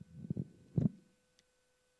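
Paper rustles as it is handled.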